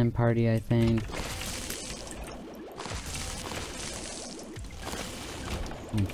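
Creatures burst with a squelchy splat.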